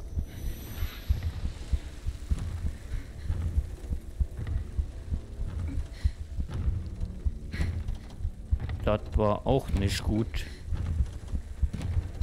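Heavy footsteps thud slowly on a wooden floor.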